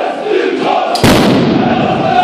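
A firecracker bangs sharply nearby.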